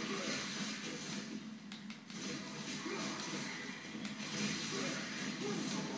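A whip cracks and swishes through the air.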